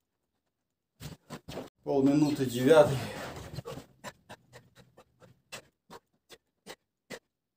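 A man breathes hard in short, sharp puffs.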